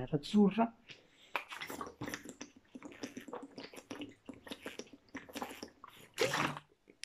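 A young man gulps a drink from a plastic bottle.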